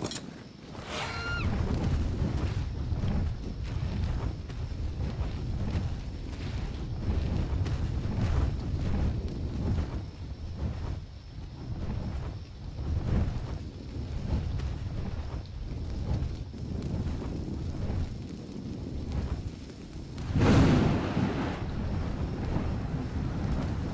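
Large wings flap in steady heavy beats.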